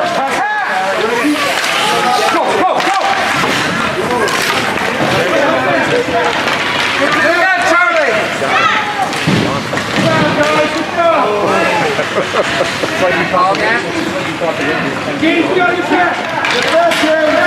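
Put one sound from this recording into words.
Skates scrape and swish across ice.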